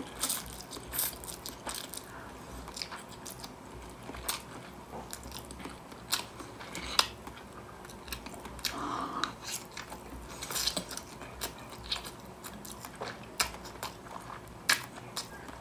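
A woman slurps noodles loudly up close.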